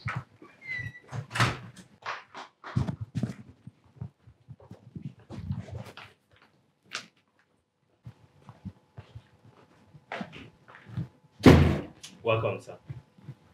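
Footsteps walk across a hard floor indoors.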